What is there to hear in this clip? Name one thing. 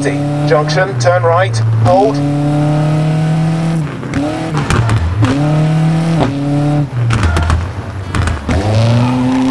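A rally car engine revs hard, rising and dropping with each gear change.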